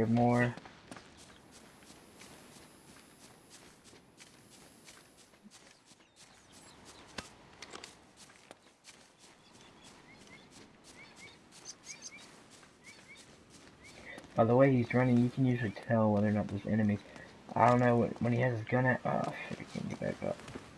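Footsteps run over a stone floor.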